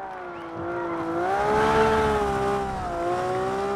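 Tyres skid and scrabble on asphalt.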